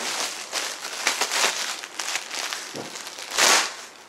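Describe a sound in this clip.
A plastic bag crinkles in a man's hands.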